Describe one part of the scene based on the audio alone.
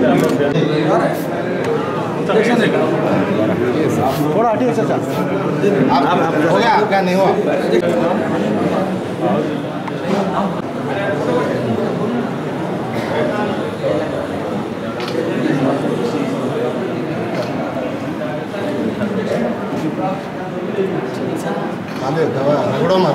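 Several men chat nearby in a busy indoor crowd.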